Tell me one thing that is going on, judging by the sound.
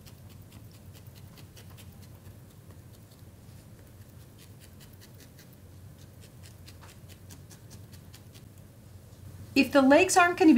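A felting needle softly pokes into wool with quick, light stabs.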